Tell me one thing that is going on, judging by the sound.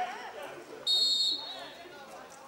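A referee's whistle blows once, sharp and short.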